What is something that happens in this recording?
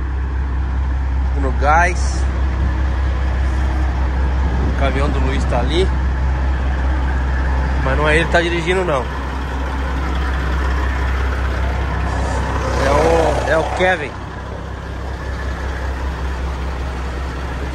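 A diesel truck engine idles nearby with a low, steady rumble.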